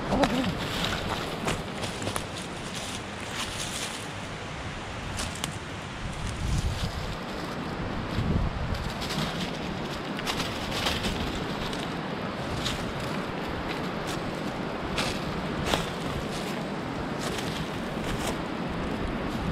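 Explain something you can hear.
Outdoors, a steady breeze blows.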